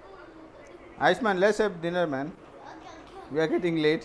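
A young boy talks excitedly and close by, with a high voice.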